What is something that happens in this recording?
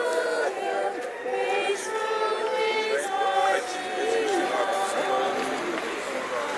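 A group of men and women sing together outdoors.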